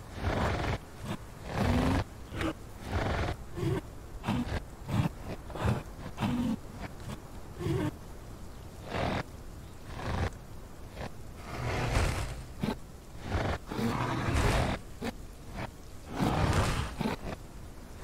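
A large beast's heavy footsteps thud on the ground.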